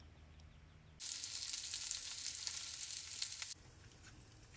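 Sausages sizzle in a hot pan.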